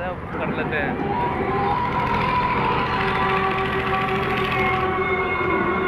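A fairground ride whirs and clatters as it spins.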